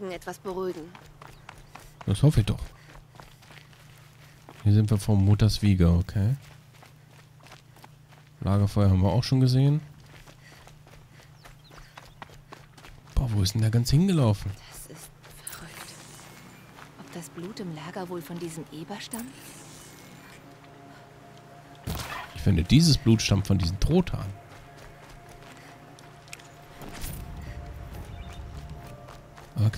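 Footsteps crunch quickly over gravel and dirt.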